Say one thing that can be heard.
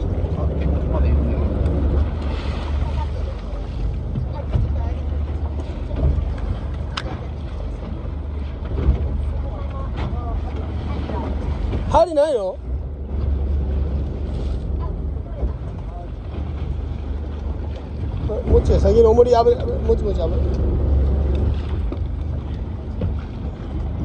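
A boat engine rumbles steadily outdoors on open water.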